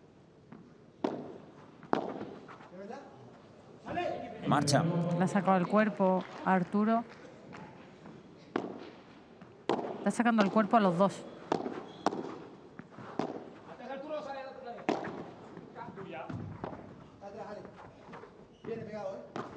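Rackets strike a ball with sharp pops in a rally.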